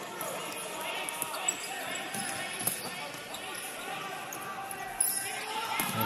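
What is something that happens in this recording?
A ball thumps as players kick it.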